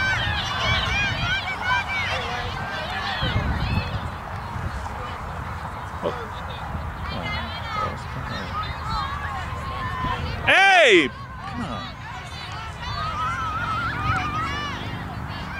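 Men and women on the sideline cheer and shout with excitement, close by outdoors.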